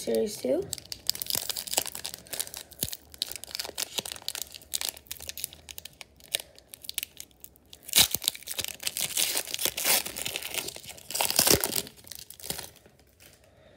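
A foil wrapper crinkles and rustles as it is handled.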